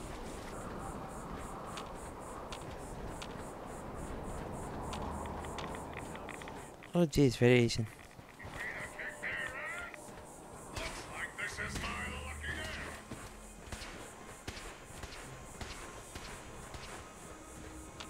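Footsteps crunch on dry dirt.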